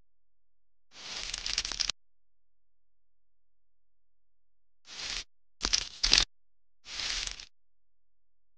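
Small sugar beads rattle and scatter against a spoon and plate.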